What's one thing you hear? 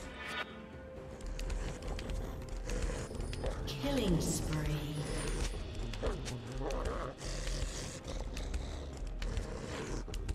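Video game combat sound effects clash, whoosh and crackle.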